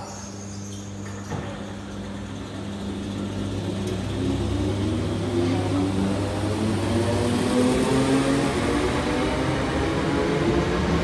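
An electric train hums and starts to move off, its motors whining as it picks up speed.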